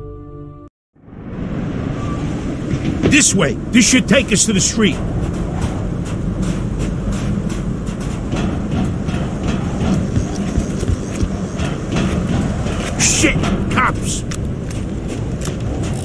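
Footsteps run quickly over a roof.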